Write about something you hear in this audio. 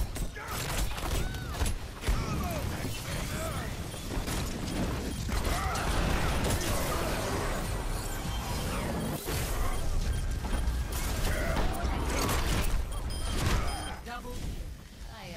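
Rapid heavy gunfire rattles without a break.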